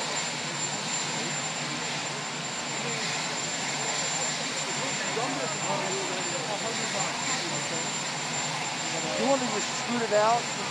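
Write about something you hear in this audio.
A crowd of people murmurs and chatters nearby outdoors.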